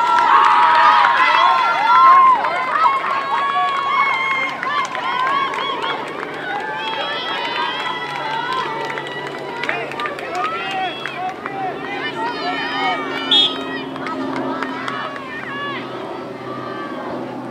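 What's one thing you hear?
A crowd of young women and girls cheers and shouts loudly outdoors, loudest at first and slowly settling down.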